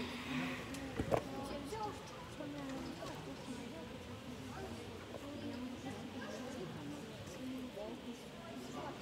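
Children chatter nearby in a large echoing hall.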